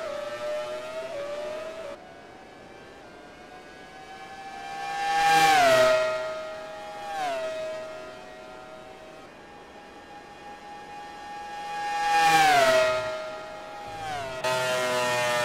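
A racing car engine screams past at high speed, its pitch dropping as it goes by.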